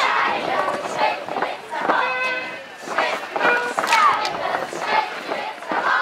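A crowd of children and adults chatters outdoors.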